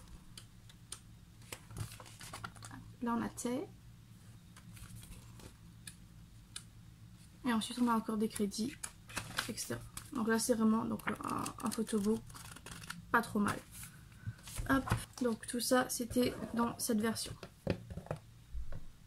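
Paper pages rustle and flip as a young woman leafs through a booklet.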